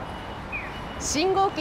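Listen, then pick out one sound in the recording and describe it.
A young woman speaks clearly and close by, outdoors.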